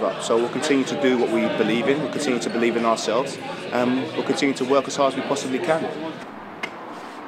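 A group of men laugh loudly and talk close by.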